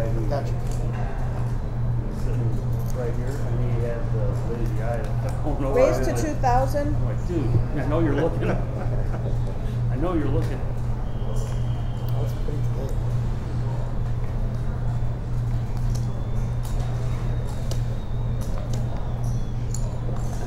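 Poker chips click against each other.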